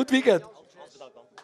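A man speaks loudly and briefly nearby.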